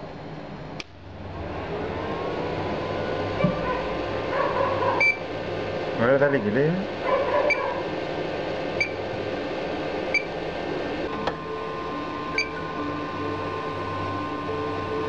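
An embroidery machine hums after switching on.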